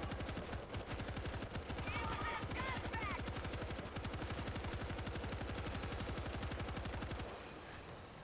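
A heavy machine gun fires in rapid, continuous bursts.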